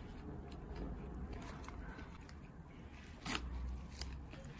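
Crispy fried coating crackles and crunches as hands tear apart a piece of chicken.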